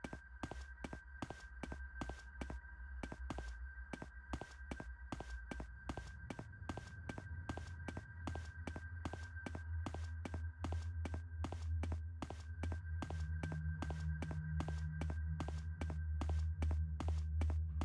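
Quick footsteps thud steadily.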